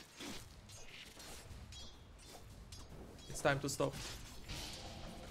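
Fantasy game spells crackle and whoosh over battle sounds.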